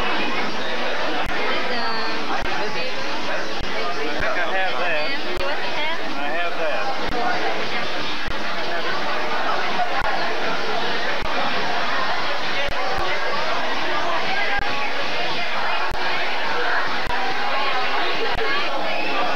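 A crowd of men and women chatters loudly nearby.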